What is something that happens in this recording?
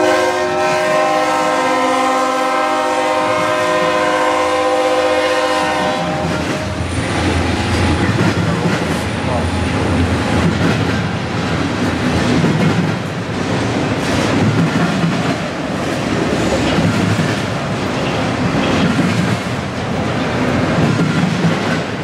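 Freight cars rumble and clatter along the rails.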